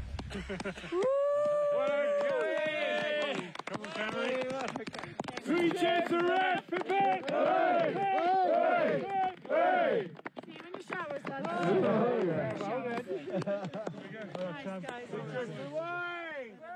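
A group of men sing loudly together outdoors.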